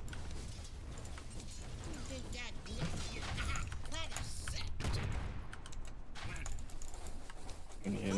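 Battle sound effects clash and crackle with spell blasts.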